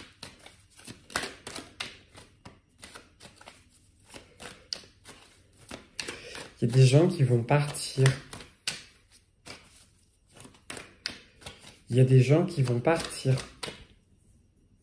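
Cards riffle and shuffle in a man's hands.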